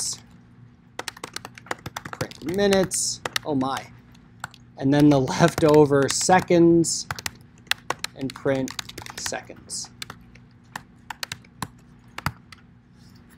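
Keyboard keys click in quick bursts of typing.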